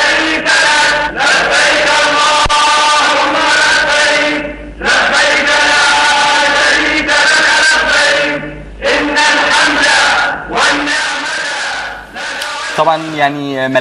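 A large crowd of men chants loudly in unison.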